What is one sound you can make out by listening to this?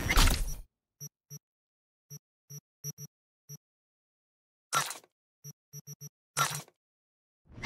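Short electronic menu beeps sound several times.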